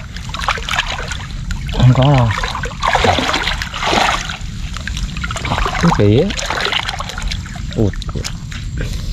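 Rubber boots squelch and slosh through shallow muddy water.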